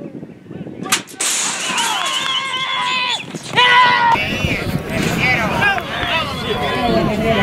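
Several men shout and cheer nearby outdoors.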